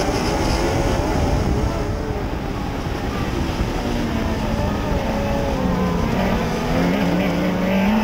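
A modified dirt track race car engine roars at racing speed, heard from inside the cockpit.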